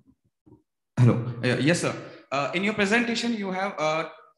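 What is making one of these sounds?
A man speaks calmly into a microphone in a large hall, heard over an online call.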